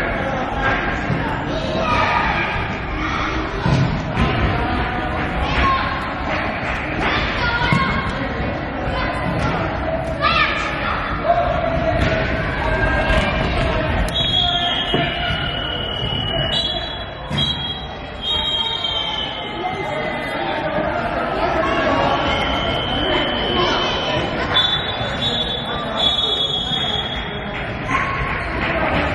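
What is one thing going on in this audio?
Children shout in an echoing sports hall.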